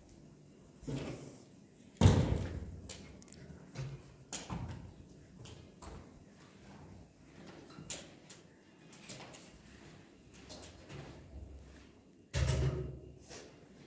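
A vacuum cleaner bumps and rolls across a hard floor.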